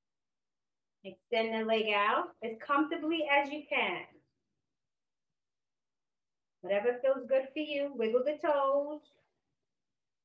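A woman speaks calmly and clearly into a close microphone, pausing between phrases.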